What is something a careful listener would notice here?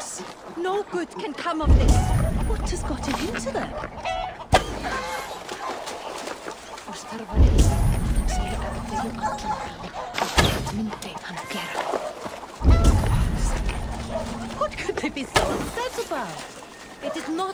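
A pig grunts nearby.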